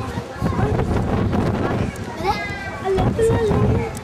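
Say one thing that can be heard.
Young children talk nearby.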